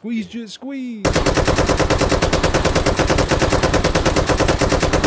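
A drum-fed rifle fires a rapid, continuous burst of shots.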